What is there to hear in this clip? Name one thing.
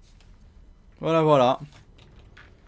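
A young man lets out a loud, drawn-out exclamation.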